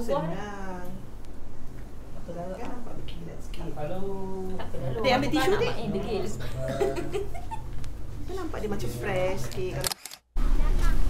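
Women talk quietly nearby.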